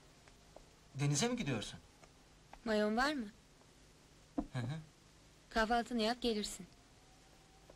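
A young woman speaks nearby in short phrases.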